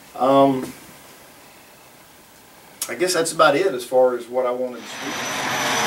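A man speaks calmly to a small room.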